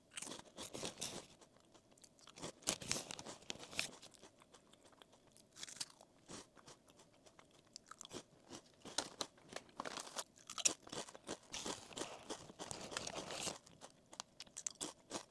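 A young woman chews crunchy snacks close to a microphone.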